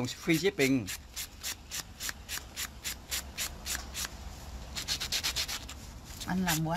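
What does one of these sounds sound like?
A nail buffer rasps against a fingernail in quick, even strokes.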